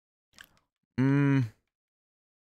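A short electronic chime sounds as a game menu cursor moves.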